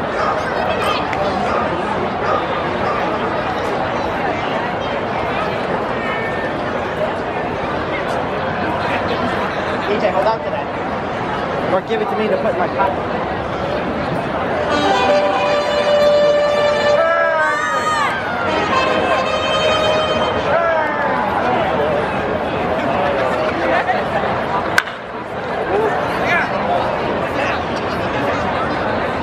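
A crowd murmurs and chatters throughout a large open ballpark.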